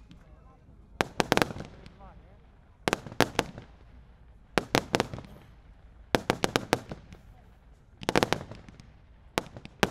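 Fireworks burst with loud bangs and crackles in bursts outdoors.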